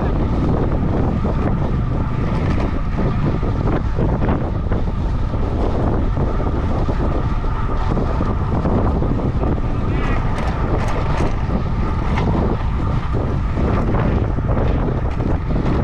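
Wind rushes loudly past a moving bicycle.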